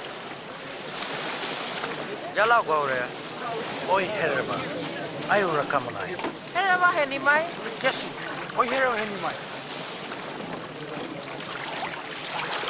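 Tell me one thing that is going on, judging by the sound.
Small waves lap against a stony shore.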